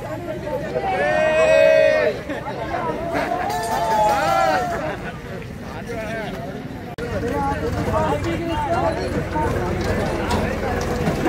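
A group of young men shout and cheer together outdoors.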